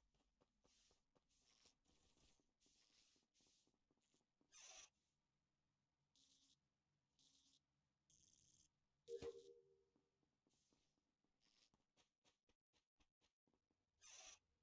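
Light game footsteps patter quickly.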